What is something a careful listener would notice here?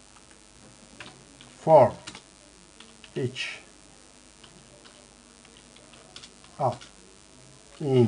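Keys click softly on a computer keyboard.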